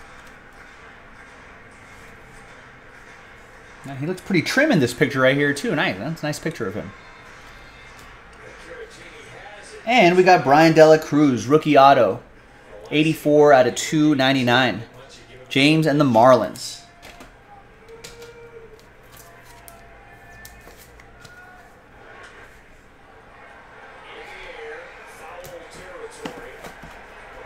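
Plastic card cases click and rattle in hands.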